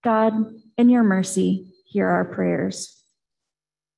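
A woman speaks calmly into a microphone, heard through an online call.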